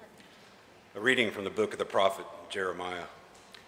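An elderly man reads aloud through a microphone.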